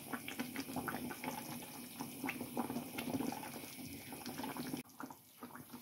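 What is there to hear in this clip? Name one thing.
A spatula scrapes and stirs inside a pan.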